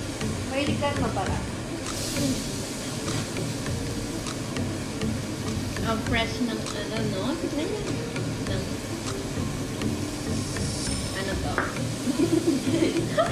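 A second young woman talks and laughs.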